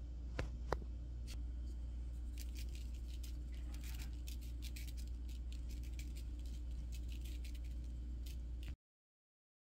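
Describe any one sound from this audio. A spice shaker rattles as seasoning is shaken out.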